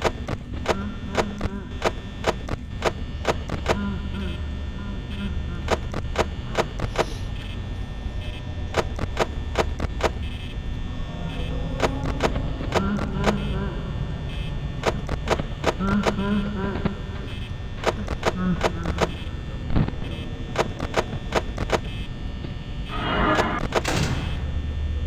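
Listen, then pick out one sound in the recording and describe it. An electric fan hums steadily.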